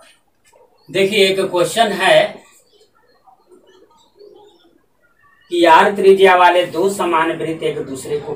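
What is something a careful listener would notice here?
A man speaks nearby in a teaching voice.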